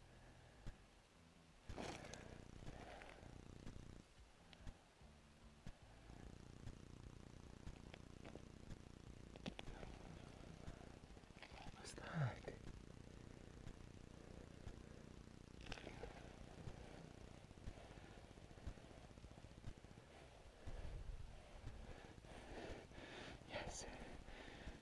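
Fishing line rustles faintly between fingers.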